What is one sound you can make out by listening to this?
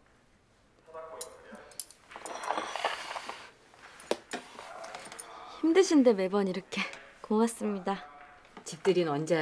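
A woman answers warmly, close by.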